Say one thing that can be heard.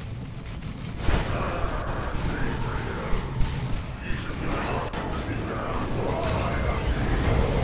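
Loud blasts boom and crackle.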